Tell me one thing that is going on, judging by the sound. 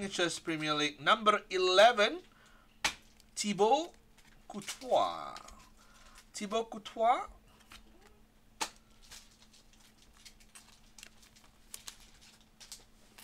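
Trading cards rustle and slide softly between hands.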